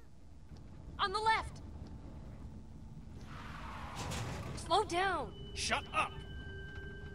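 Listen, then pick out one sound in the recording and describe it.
A man shouts urgently close by.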